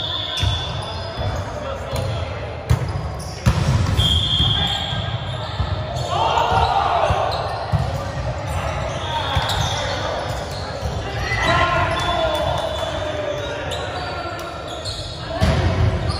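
Volleyballs thump as players hit them, echoing in a large hall.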